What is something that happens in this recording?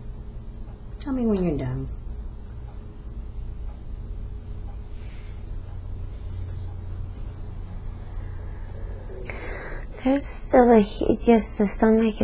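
A woman speaks weakly and breathlessly, close by.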